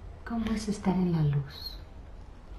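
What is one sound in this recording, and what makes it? A middle-aged woman speaks softly close by.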